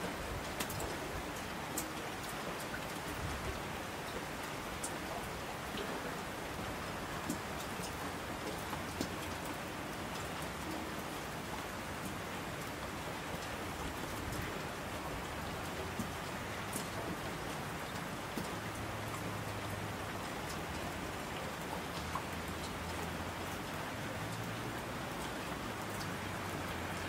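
A mountain stream rushes loudly.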